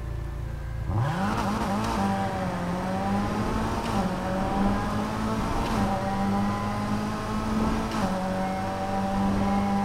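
A sports car engine roars as the car speeds up and races along.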